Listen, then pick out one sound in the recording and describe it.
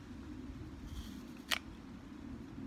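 A person bites into a crisp fruit with a crunch.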